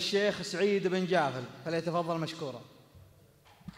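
A man recites loudly into a microphone, heard through loudspeakers in an echoing hall.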